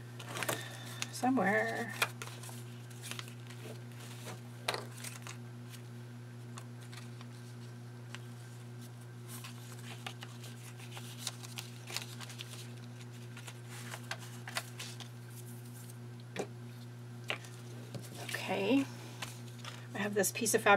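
Paper rustles and slides as hands arrange cards.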